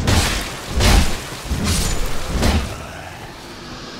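A sword clangs against an enemy in quick blows.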